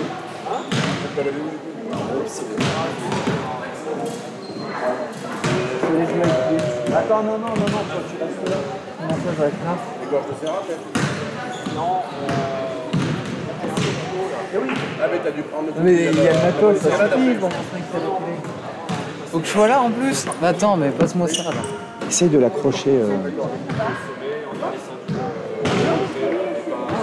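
A basketball bounces on a hard floor in a large echoing hall.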